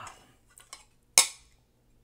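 A metal spoon clinks against a plate.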